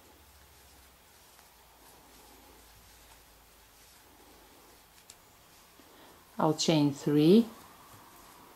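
A crochet hook softly rustles and pulls through yarn.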